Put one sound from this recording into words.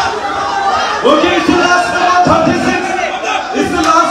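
A crowd of young men and women chants together in unison.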